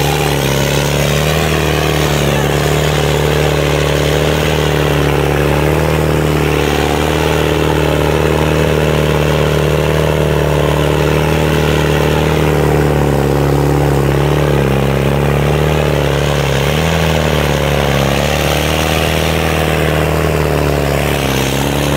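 A tractor engine roars steadily close by.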